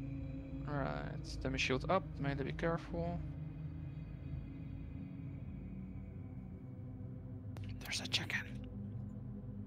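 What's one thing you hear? Magic spells whoosh and crackle in a fierce battle.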